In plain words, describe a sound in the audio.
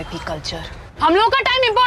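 A woman shouts sharply from close by.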